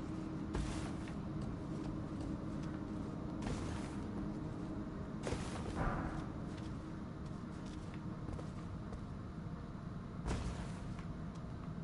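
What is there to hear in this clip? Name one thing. Short rushes of air whoosh past during leaps.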